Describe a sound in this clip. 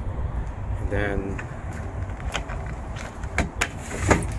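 A plastic handle clicks and rattles.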